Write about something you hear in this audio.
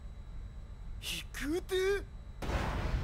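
A young man asks hesitantly, in disbelief.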